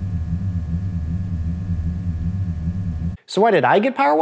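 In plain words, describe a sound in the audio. A low electric hum drones steadily from a car.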